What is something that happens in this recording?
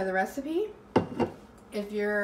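A plastic cup is set down on a hard countertop with a light knock.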